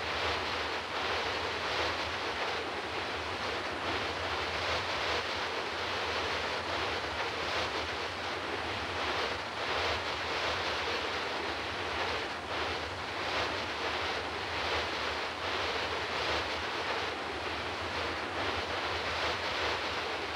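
Wind rushes loudly and steadily past an aircraft in flight.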